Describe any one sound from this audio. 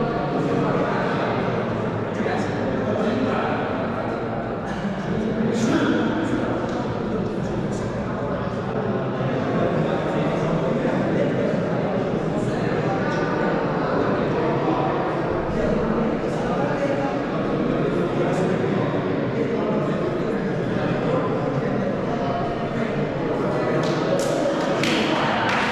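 A group of young men talk together in a huddle, their voices echoing in a large hall.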